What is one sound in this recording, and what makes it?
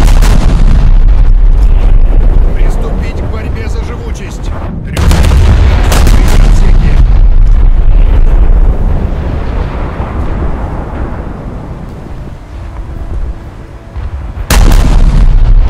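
Heavy ship guns fire with deep, booming blasts that roll away.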